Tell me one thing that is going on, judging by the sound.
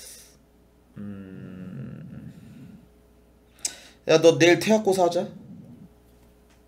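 A young man speaks close to a microphone, with animation.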